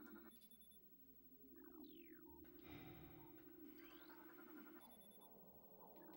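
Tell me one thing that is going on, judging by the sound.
Electronic beeps and chirps sound as a scan completes.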